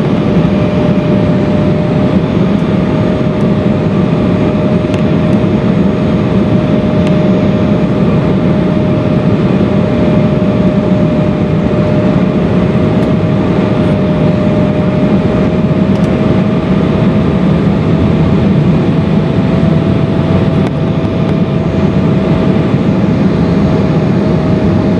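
Jet engines roar steadily with a constant hum inside an airplane cabin.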